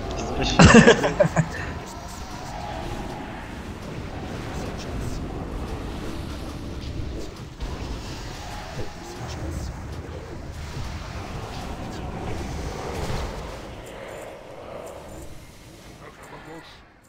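Magic spells blast and whoosh in rapid bursts.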